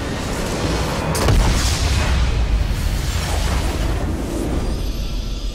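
A magical explosion booms and crackles.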